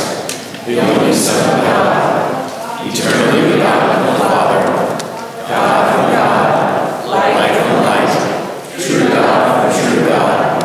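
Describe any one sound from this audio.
A congregation sings together in a large echoing hall.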